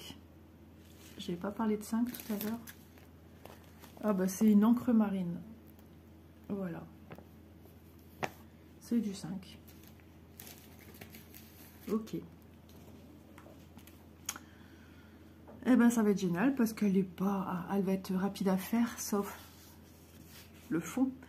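Stiff paper rustles and crinkles as hands handle it.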